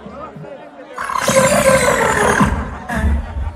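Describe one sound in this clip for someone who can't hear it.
A crowd cheers and screams loudly.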